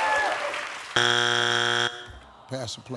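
A buzzer sounds with a loud, steady tone.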